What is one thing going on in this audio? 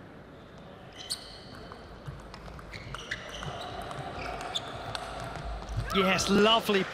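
A table tennis ball clicks back and forth on paddles and the table in a quick rally.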